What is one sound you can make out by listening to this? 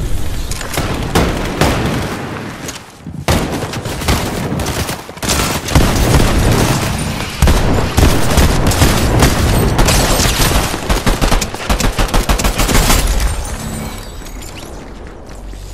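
Footsteps patter quickly on hard ground in a video game.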